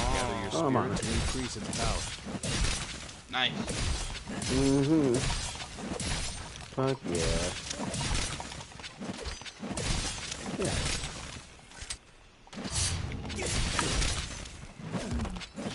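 A sword slashes and thuds against a wooden post.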